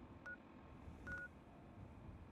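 A handheld electronic device beeps twice.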